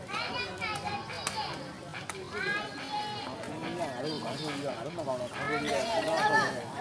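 Spectators talk and call out outdoors.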